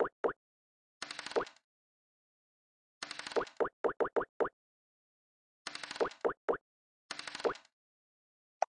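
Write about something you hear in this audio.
Dice rattle in short rolling bursts.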